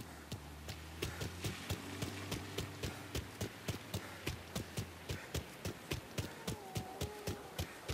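Footsteps run on pavement.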